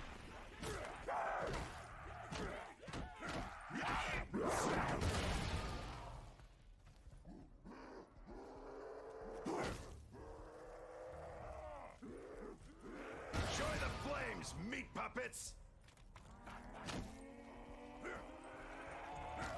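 Monsters growl and snarl close by.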